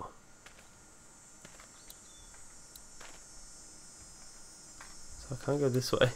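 Footsteps crunch slowly on the forest floor.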